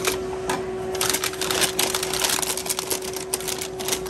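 A paper bag crinkles and rustles as it is folded.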